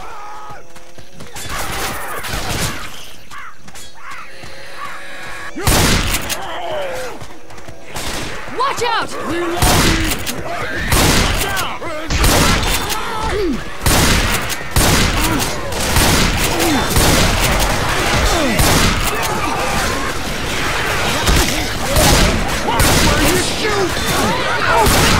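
A young man talks with animation through a microphone.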